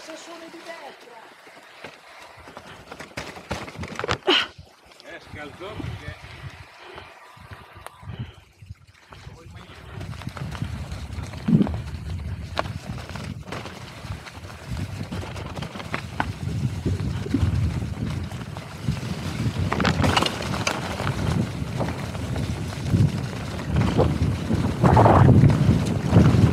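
A mountain bike rattles and bumps over a rocky, leaf-covered trail.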